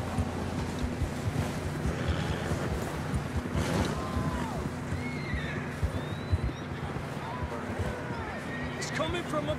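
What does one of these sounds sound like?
Hooves crunch through deep snow as horses walk.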